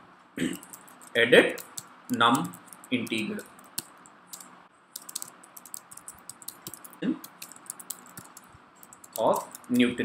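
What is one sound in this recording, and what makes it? Keys clack on a computer keyboard in quick bursts.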